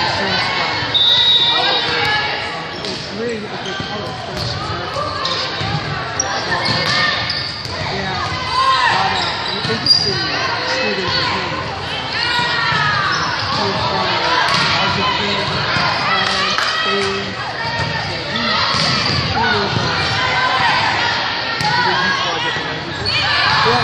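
Young women in a crowd shout and cheer in a large echoing gym.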